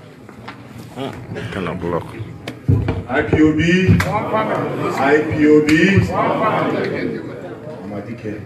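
A man shouts with agitation in a large echoing hall.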